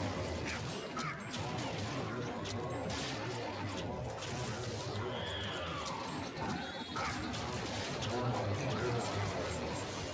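Energy weapons fire in rapid blasts.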